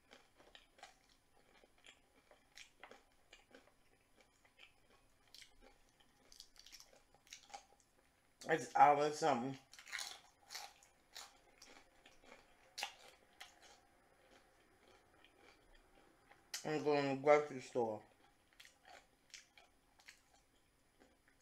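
A woman chews food noisily close to a microphone.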